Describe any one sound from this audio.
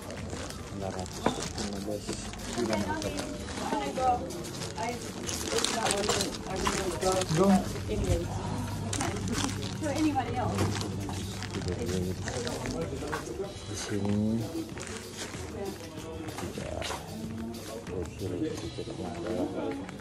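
Several men talk and chatter nearby in an echoing room.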